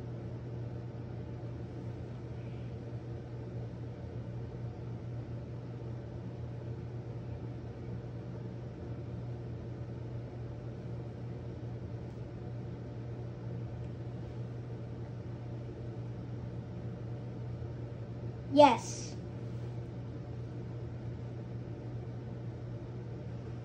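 A television gives off a low, steady hum.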